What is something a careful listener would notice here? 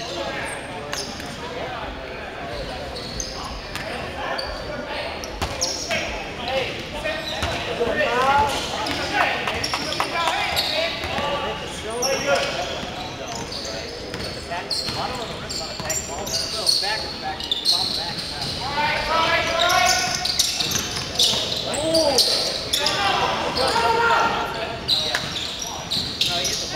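Young men shout and call out to one another.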